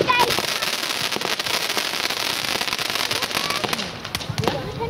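Fireworks crackle and fizz rapidly outdoors.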